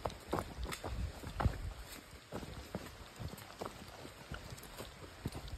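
Footsteps crunch and scuff on a rocky dirt trail.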